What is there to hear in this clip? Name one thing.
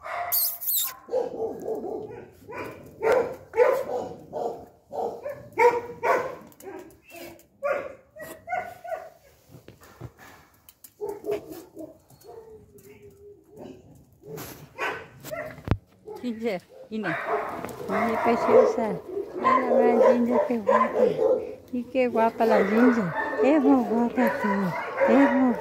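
Two dogs scuffle and play close by.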